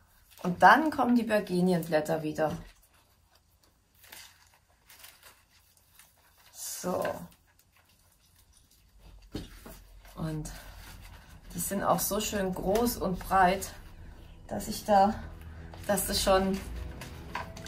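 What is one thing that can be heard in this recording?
A woman speaks calmly and clearly close by.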